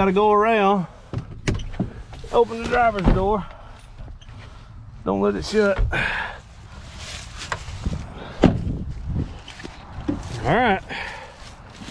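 A car door hinge creaks loudly.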